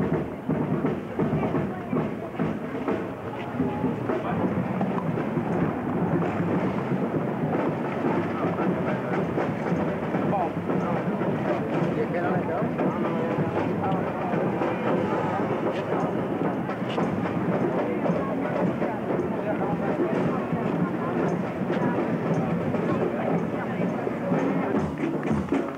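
A crowd of onlookers murmurs and chatters outdoors.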